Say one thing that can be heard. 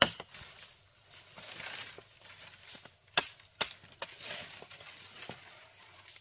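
Leaves and a branch rustle as a stick is handled.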